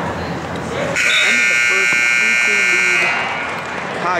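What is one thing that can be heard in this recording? A loud buzzer sounds steadily for about two seconds.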